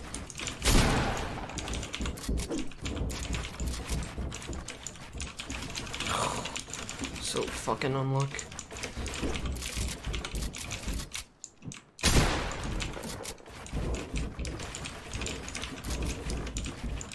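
Keys and a mouse click rapidly.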